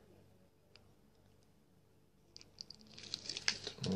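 A plastic tube crinkles as it is squeezed.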